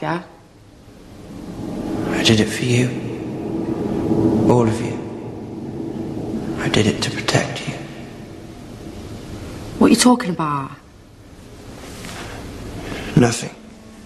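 A young man speaks quietly and intensely, close by.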